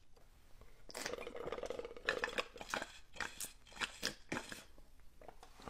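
A young man slurps and gulps a drink.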